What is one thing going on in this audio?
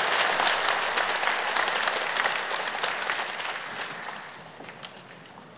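A large crowd applauds in an echoing hall and the clapping slowly dies away.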